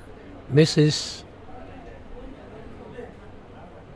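A striker flicked across a wooden board clicks against game pieces.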